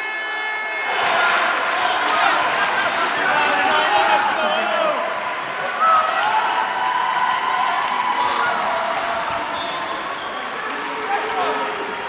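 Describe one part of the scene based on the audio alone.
Young men shout and cheer excitedly up close.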